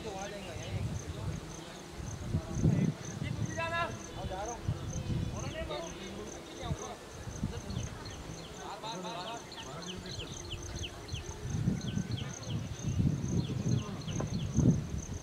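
Wind gusts and rumbles across an open field.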